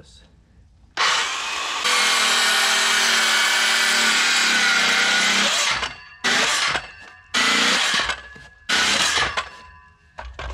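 A cordless circular saw whines loudly as it cuts through wood.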